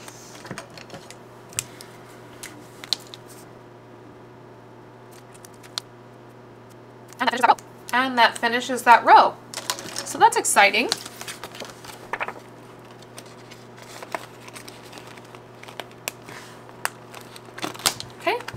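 A plastic sleeve crinkles and rustles.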